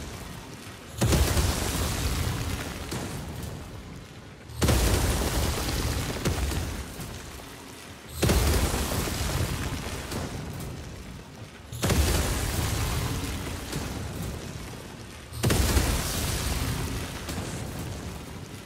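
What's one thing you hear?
An energy barrier crackles and hums in loud bursts that repeat every few seconds.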